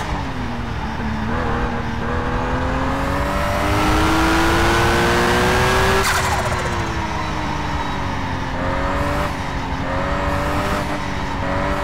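A car engine roars at high speed, its pitch rising and falling as it shifts gears.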